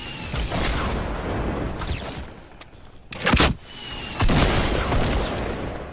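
Explosions boom close by and rumble away.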